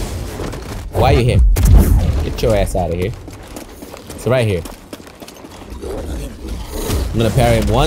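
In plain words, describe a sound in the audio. A large beast roars and growls in bursts.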